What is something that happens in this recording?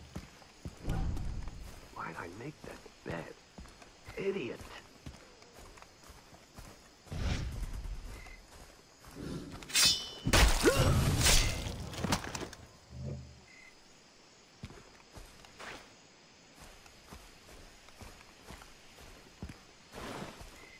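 Footsteps crunch on grass and gravel.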